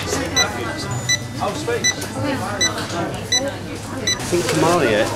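A checkout scanner beeps repeatedly.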